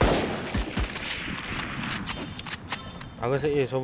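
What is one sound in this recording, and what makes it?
A pistol clicks and clacks as it is reloaded.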